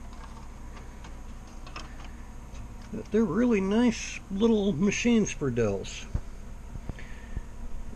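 Plastic parts click and rustle as cables are handled close by.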